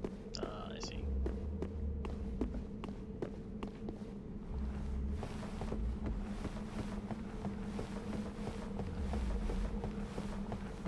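Heavy, deep thuds boom as a giant creature strikes the ground.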